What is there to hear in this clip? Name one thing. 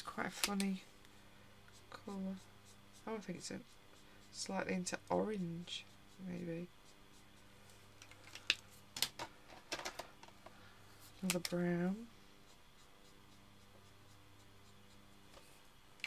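A marker tip scratches softly on paper.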